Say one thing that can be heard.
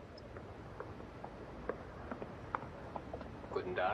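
A man's footsteps tap on the pavement.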